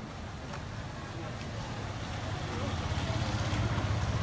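A motorbike engine hums as the motorbike approaches.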